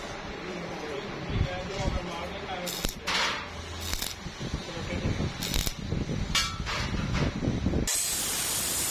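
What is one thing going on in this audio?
An electric welder crackles and sputters in short bursts.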